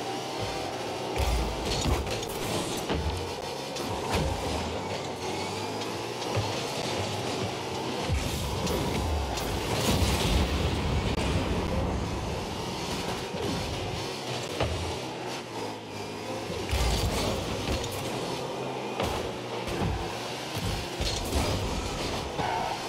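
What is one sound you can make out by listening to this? A car engine roars and hums steadily.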